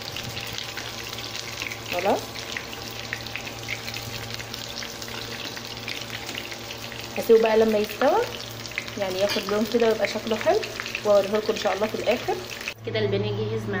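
Hot oil sizzles and crackles steadily in a frying pan.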